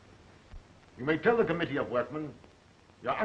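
An older man replies in a raised voice.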